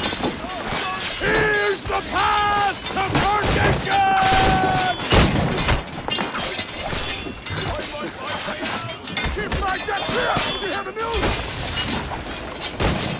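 Men shout and yell in battle.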